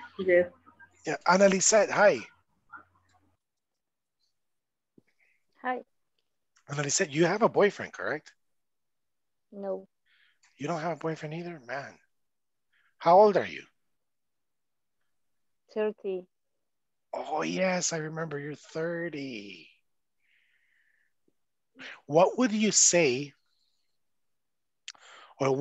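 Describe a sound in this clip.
A young man speaks with animation over an online call, in short bursts with pauses.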